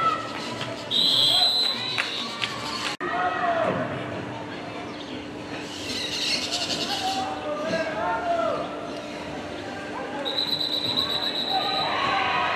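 A referee's whistle blows in short, shrill blasts.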